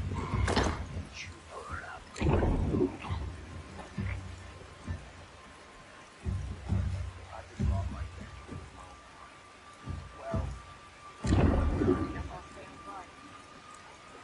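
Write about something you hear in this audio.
A young man talks in bursts into a close microphone.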